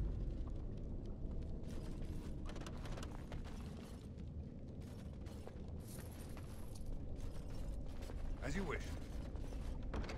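Armoured footsteps thud and clink on rocky ground.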